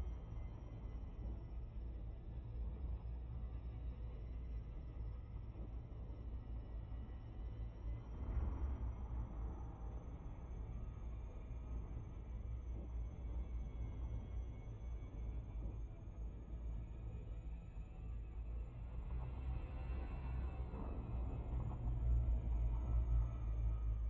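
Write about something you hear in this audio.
A deep spaceship engine hums steadily and swells louder near the end.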